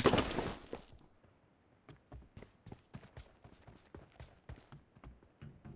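Footsteps patter on hard ground.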